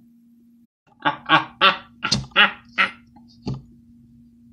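A woman laughs in short, bright bursts close by.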